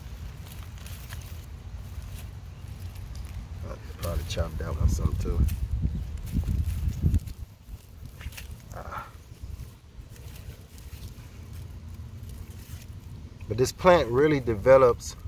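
Loose soil crumbles and rustles between hands.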